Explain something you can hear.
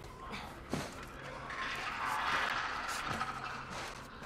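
Boots climb a metal ladder with clanking steps.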